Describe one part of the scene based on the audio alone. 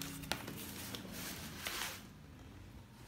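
Cardboard rustles and scrapes.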